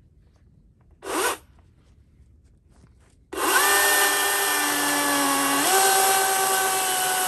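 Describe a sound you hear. A battery chainsaw revs with a high electric whine.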